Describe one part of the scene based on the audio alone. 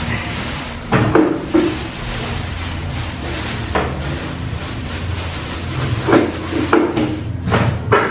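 A plastic bin lid clacks shut.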